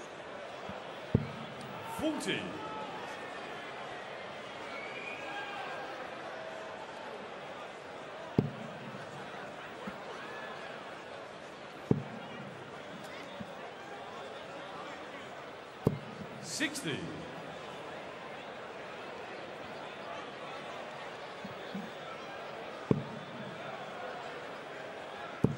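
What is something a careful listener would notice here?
A large crowd murmurs in a big hall.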